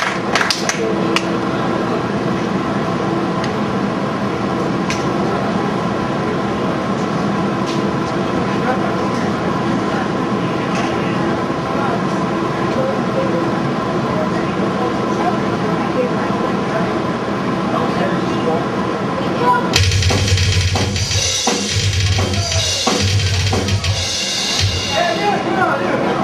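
Drums pound fast and hard.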